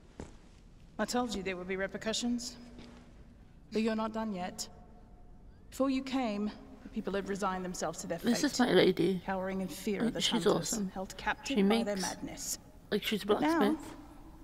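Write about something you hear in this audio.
A woman speaks calmly and earnestly, close by.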